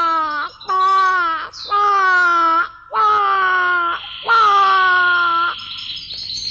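A woman sings loudly in a high, wailing voice.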